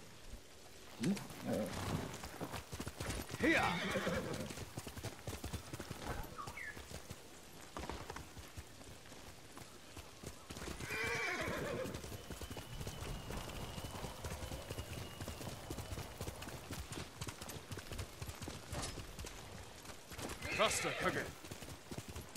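Horse hooves thud on grass at a gallop.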